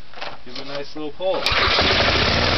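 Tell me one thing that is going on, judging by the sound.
A man yanks a starter cord with a sharp rasp.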